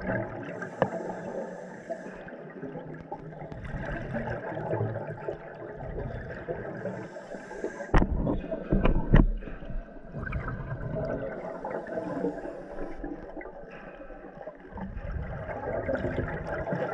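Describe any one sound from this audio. A diver breathes out through a regulator, sending up bursts of gurgling bubbles underwater.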